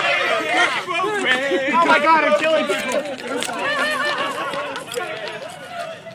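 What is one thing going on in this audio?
A group of young men shout and cheer outdoors.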